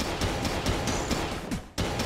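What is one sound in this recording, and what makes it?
A laser beam hums and crackles.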